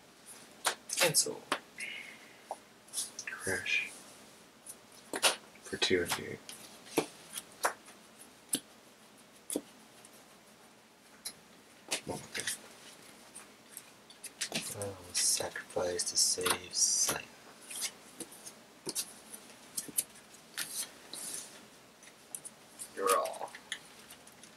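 Playing cards are placed and slid across a soft mat with light taps.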